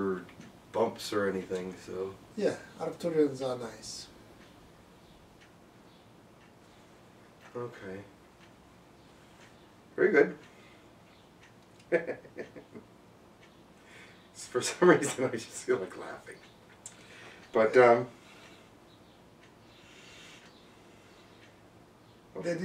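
A middle-aged man speaks calmly nearby, in short phrases with pauses.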